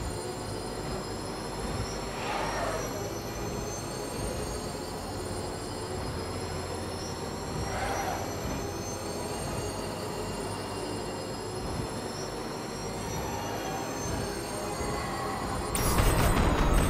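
A racing car engine roars and revs up steadily through the gears.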